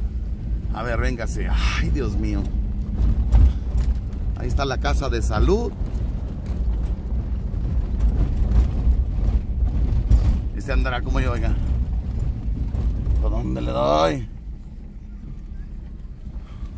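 A car engine hums low and steady inside a moving car.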